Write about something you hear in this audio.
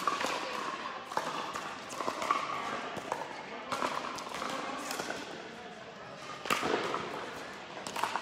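Paddles pop against a plastic ball in an echoing indoor hall.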